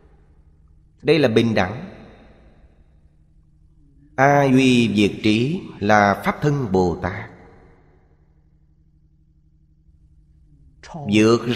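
An elderly man speaks calmly and slowly into a close microphone, with pauses.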